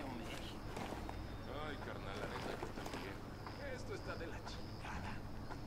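Footsteps shuffle softly over dirt.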